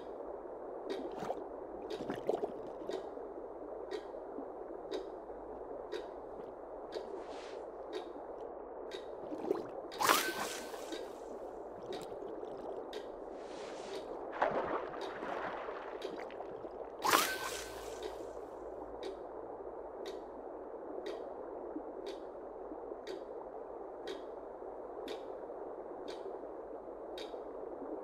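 Water burbles steadily in a fish tank.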